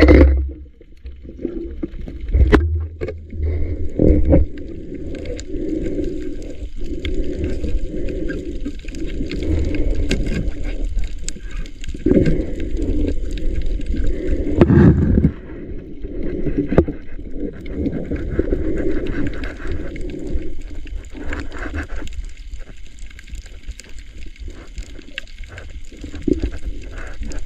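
A diver breathes through a regulator underwater, bubbles rushing and gurgling in bursts.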